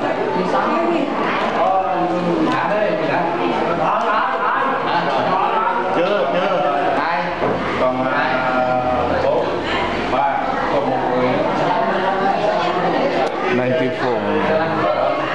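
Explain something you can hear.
Several men and women talk at once, close by.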